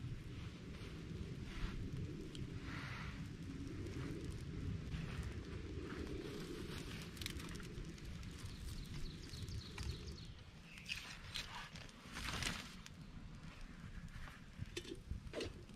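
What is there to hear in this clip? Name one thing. A small fire crackles and hisses softly.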